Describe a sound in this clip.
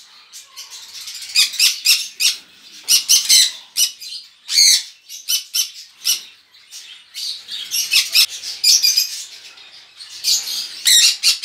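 A baby parrot chirps shrilly and repeatedly, close by.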